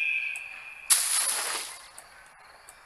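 A body lands in a pile of hay with a loud rustle.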